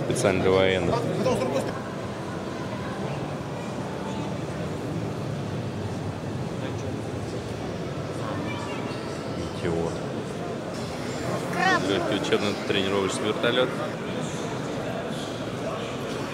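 A crowd of people talk in a large echoing hall.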